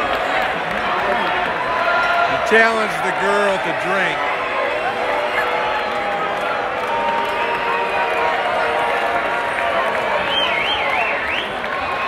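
A large crowd chatters loudly in a big echoing hall.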